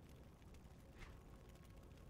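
A short soft click sounds once.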